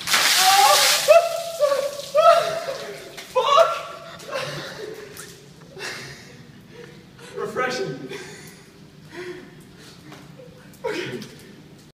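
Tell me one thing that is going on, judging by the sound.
A man gasps and shouts from the cold.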